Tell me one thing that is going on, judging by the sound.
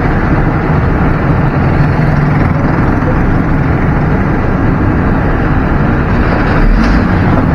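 A truck engine rumbles steadily inside the cab.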